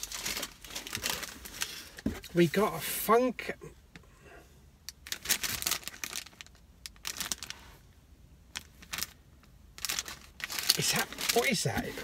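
Plastic packaging crinkles and rustles in a man's hands.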